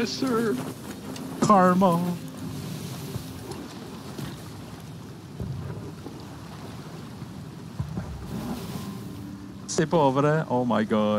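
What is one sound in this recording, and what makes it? Rough sea waves surge and splash against a wooden ship.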